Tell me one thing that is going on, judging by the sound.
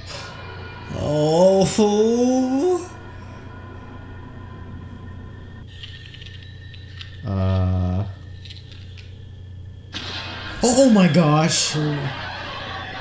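A young man cries out loudly in alarm, close by.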